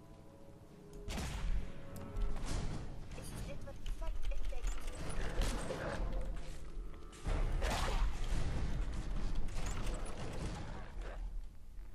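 Rapid video game gunfire rattles.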